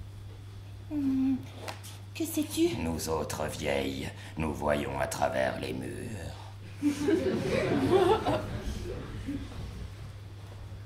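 A young woman speaks with feeling.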